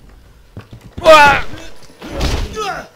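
A young man screams in fright.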